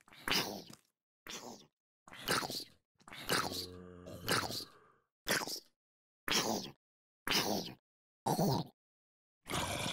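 Short game sound effects pop out one after another.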